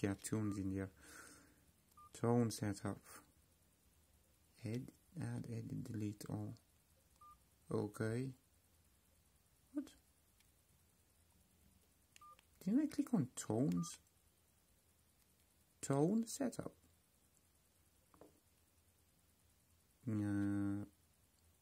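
Small buttons click softly as they are pressed.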